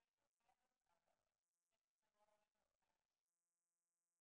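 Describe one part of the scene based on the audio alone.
A young woman speaks calmly, heard through an online call.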